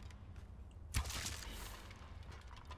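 An arrow whooshes through the air.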